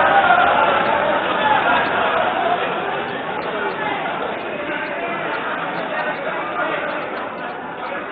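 A crowd of men and women cheer and shout loudly in a large hall.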